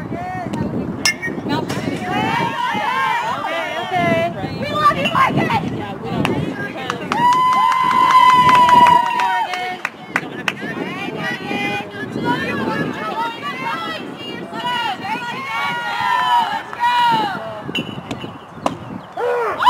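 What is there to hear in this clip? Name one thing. A softball smacks into a catcher's mitt.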